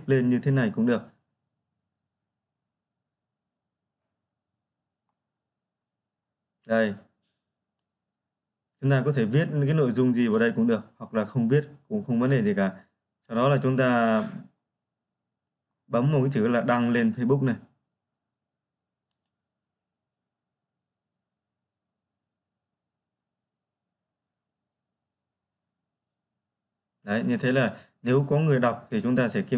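A young man talks calmly into a close microphone, in short bursts with long pauses.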